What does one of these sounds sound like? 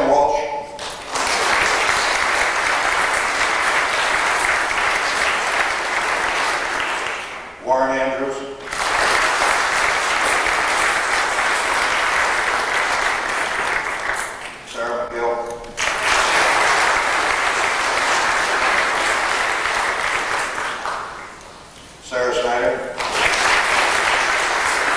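A crowd sings together in a large room.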